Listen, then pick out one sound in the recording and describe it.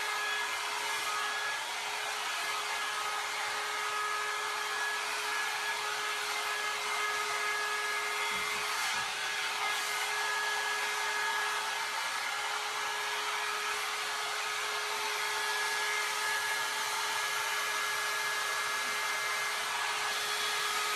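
A hair dryer blows steadily close by.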